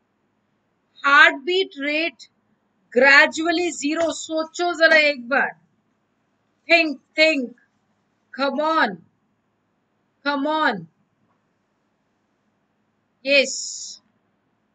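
A woman speaks calmly and clearly into a microphone, in short phrases with pauses.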